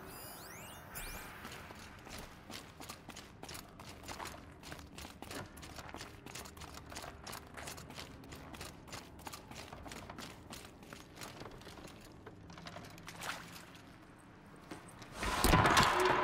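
Footsteps crunch steadily over snow and stone.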